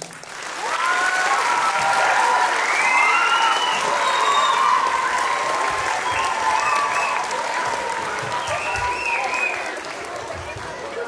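Young girls cheer and shriek excitedly in an echoing hall.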